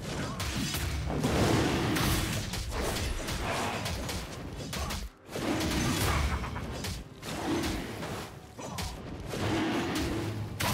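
Magical blasts and blows crash in a fast fight.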